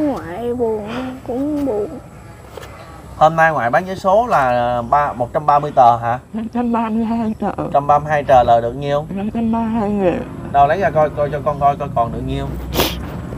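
An elderly woman talks calmly close by.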